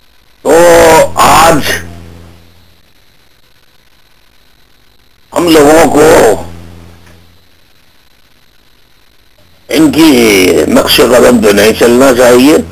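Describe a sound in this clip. A middle-aged man speaks forcefully into a microphone, in bursts with long pauses and a slight echo.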